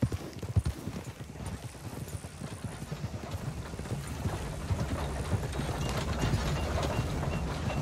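A horse walks with slow, soft hoofbeats.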